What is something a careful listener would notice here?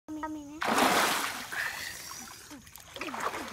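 Water splashes loudly as a man thrashes in a river.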